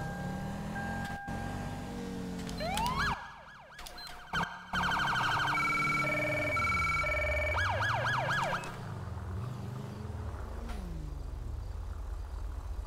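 A police siren wails and yelps.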